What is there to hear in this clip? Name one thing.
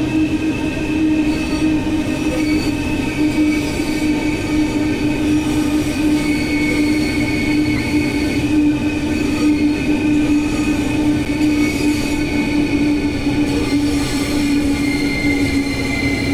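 An electric train hums steadily as it rolls along the tracks.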